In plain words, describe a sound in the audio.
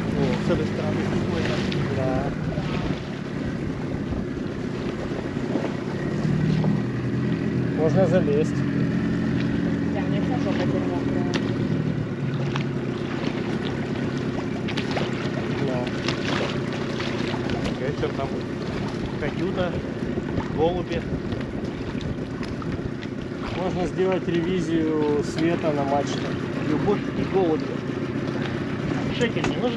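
A boat engine hums steadily close by.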